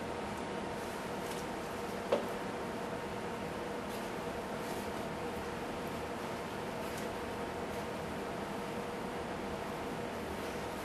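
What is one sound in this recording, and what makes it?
A hand stirs food in a metal pot with soft scraping and rustling.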